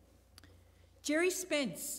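A woman speaks into a microphone, reading out calmly.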